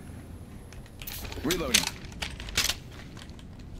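A rifle's mechanism clacks and rattles as it is handled.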